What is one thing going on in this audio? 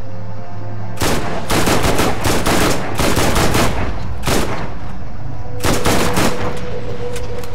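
Gunshots fire loudly in rapid bursts.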